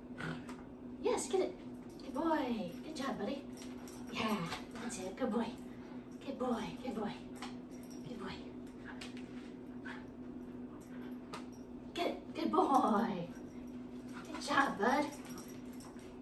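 A young woman talks to a dog in a high, playful voice close by.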